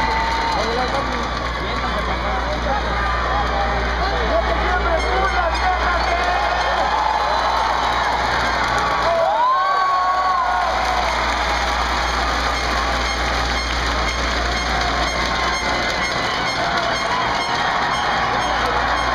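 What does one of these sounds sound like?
A large crowd in an echoing arena cheers and shouts throughout.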